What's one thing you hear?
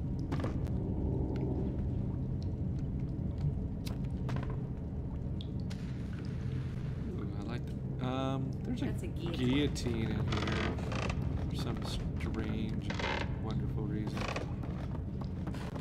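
Footsteps creak on wooden boards.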